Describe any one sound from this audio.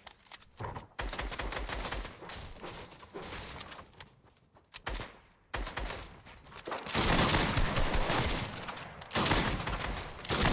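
Quick footsteps thud on wooden floors.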